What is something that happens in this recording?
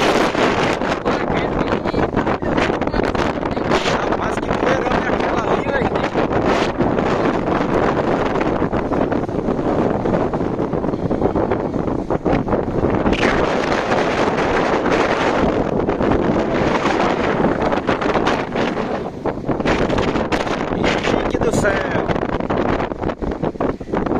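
Gusts of wind batter against the microphone.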